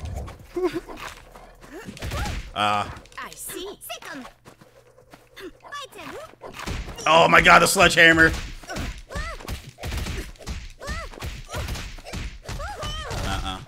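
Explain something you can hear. Cartoon punches and kicks land with quick sharp smacks.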